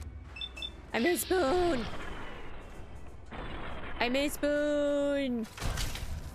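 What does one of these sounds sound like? A young woman speaks animatedly into a microphone.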